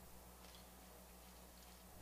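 Milk splashes into a metal mixing bowl.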